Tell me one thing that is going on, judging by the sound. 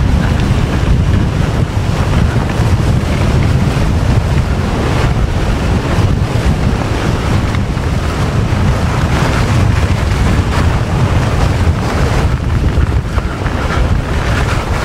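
Skis hiss and scrape over snow.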